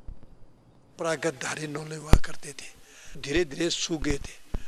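An older man speaks calmly into several microphones close by.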